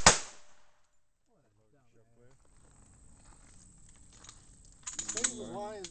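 A pistol fires sharp shots outdoors.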